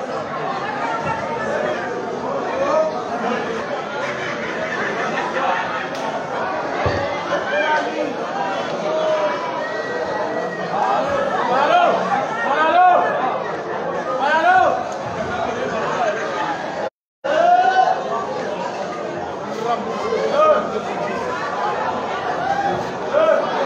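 A large crowd chatters and shouts loudly in an echoing hall.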